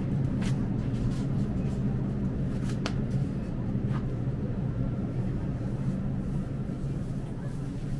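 Refrigerated display cases hum steadily.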